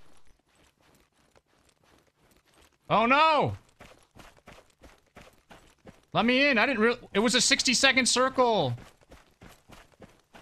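Footsteps run over dry ground.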